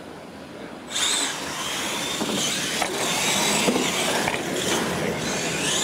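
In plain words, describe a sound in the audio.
The electric motors of radio-controlled monster trucks whine as the trucks race at full throttle.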